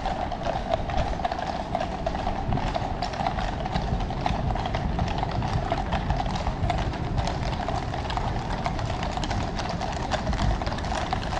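Horses' hooves clip-clop on a paved road at a distance.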